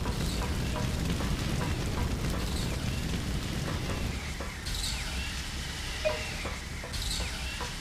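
Game footsteps clank lightly on a metal floor.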